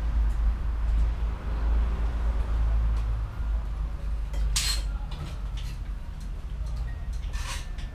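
A bicycle clanks and rattles as it is lifted and wheeled.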